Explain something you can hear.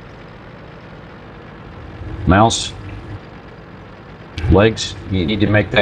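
A heavy tank engine rumbles low and steadily.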